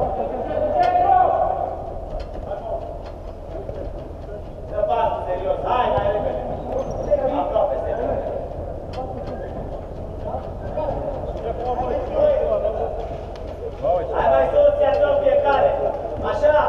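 A football is kicked, echoing in a large dome.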